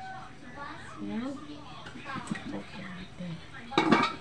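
An aluminium lid is lifted off a metal wok.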